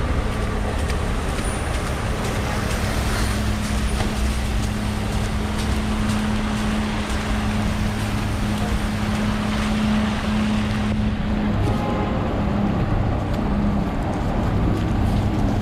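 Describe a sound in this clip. A garbage truck engine idles and rumbles steadily nearby.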